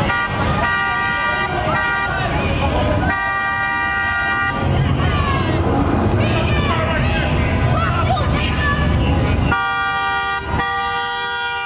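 A car horn blares in long, repeated blasts.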